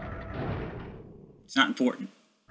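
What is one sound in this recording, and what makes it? A heavy metal door slides open with a deep grinding rumble.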